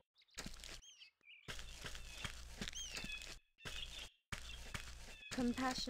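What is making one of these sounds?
Footsteps fall steadily on soft grass.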